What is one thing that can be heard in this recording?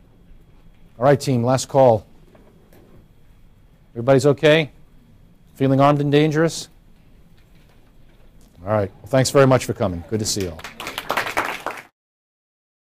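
A middle-aged man speaks calmly, in bursts.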